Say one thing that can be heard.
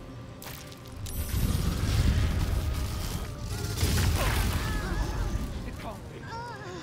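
Lightning crackles and booms in a loud burst.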